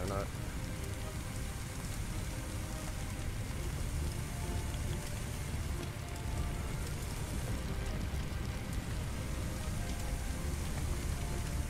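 Water sprays from a hose with a steady hiss.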